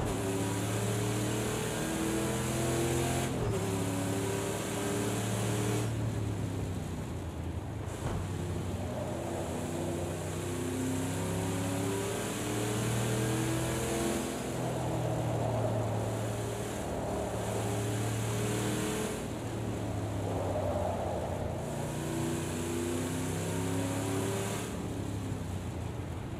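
A racing car engine roars, rising and falling in pitch as it revs up and shifts gears.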